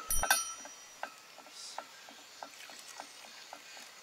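Milk pours into a bowl.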